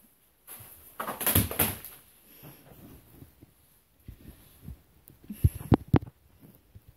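Hands fumble and knock against the phone close by.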